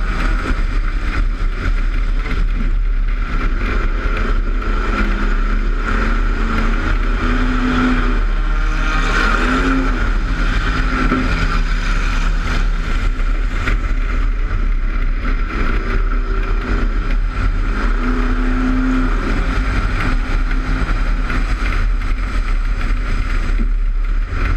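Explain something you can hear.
A race car engine roars loudly up close, revving up and down through the turns.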